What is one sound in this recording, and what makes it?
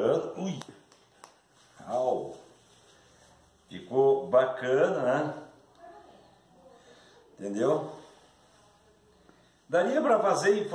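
A middle-aged man speaks calmly close by, in short bursts with pauses.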